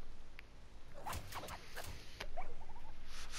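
Hyenas snarl and cackle close by.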